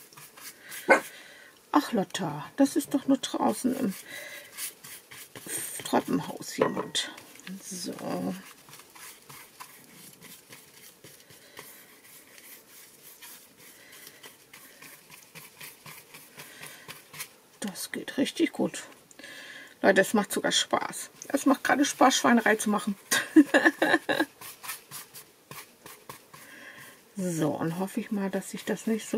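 A paintbrush scrapes and dabs softly on paper.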